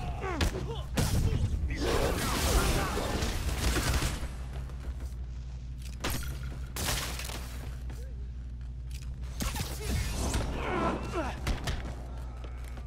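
Smoke bursts hiss out with a whoosh.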